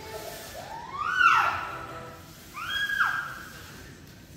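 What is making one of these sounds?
A baby squeals loudly in short rising cries.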